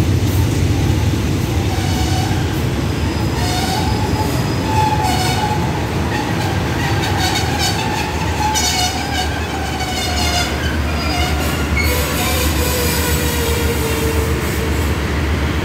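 Train wheels squeal against the rails.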